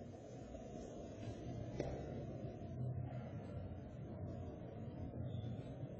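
Footsteps walk across a hard floor in a large echoing room.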